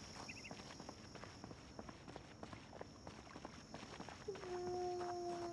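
Footsteps tap steadily on pavement.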